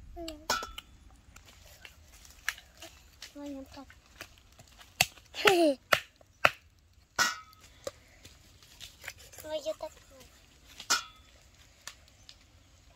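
A cleaver chops through raw chicken on a wooden chopping block.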